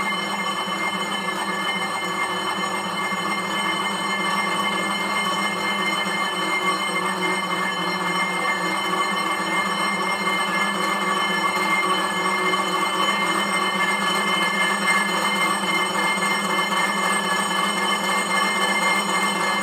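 An exercise bike's flywheel whirs steadily.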